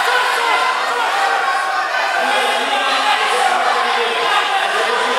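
A crowd of children and adults chatters and calls out in a large echoing hall.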